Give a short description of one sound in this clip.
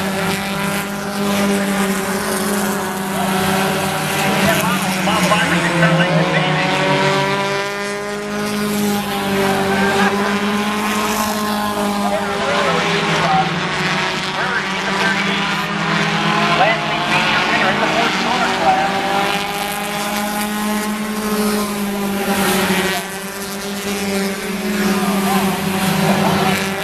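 Race car engines roar loudly as the cars race past.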